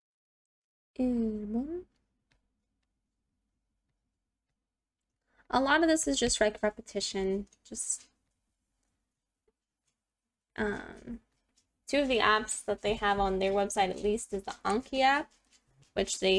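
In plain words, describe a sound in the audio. A young woman speaks calmly and clearly into a close microphone, pausing between phrases.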